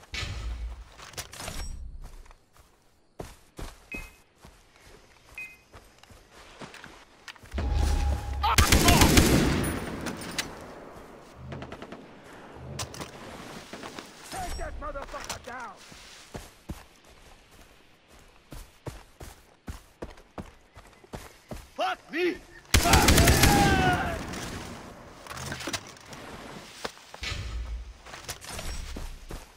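An assault rifle fires shots.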